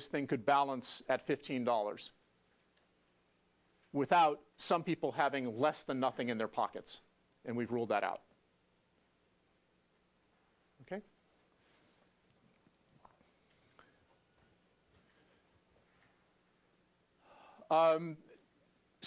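A middle-aged man lectures calmly through a clip-on microphone, with pauses.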